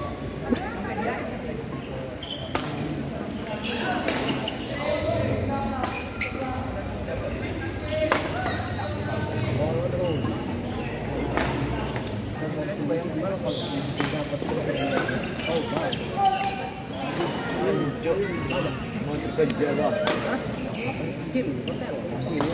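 Shuttlecocks are struck sharply with rackets.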